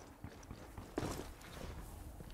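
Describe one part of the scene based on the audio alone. A person lands with a heavy thud.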